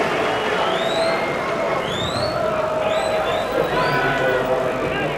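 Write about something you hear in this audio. Fans in a stadium crowd whistle in short rising bursts.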